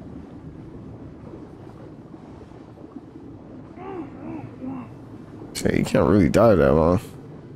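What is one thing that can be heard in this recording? Muffled water swirls and rumbles as a swimmer glides underwater.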